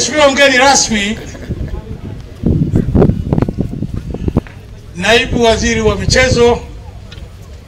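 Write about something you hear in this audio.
An elderly man speaks loudly into a microphone through a loudspeaker, with pauses.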